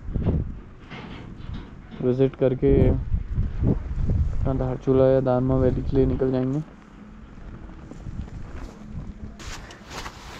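Tyres crunch over a rough gravel road.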